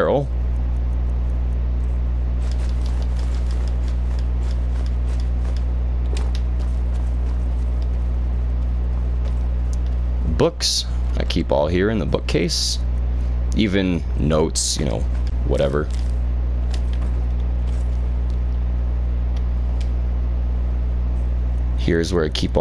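Soft clicks tick as items are browsed in a menu.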